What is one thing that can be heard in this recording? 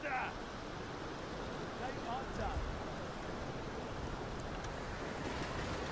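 A fire roars and crackles.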